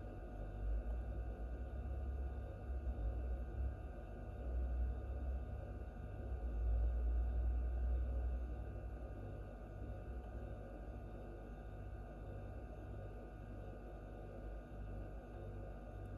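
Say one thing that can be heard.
An incubator fan hums steadily.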